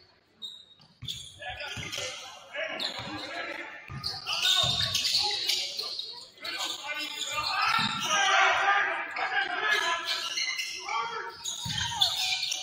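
Players and spectators call out and shout in a large echoing gym.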